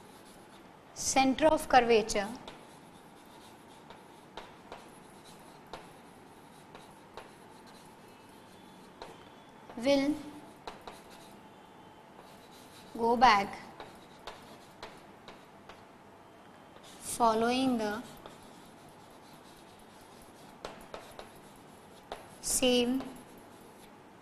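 A woman speaks in short bursts close to a microphone, with pauses between.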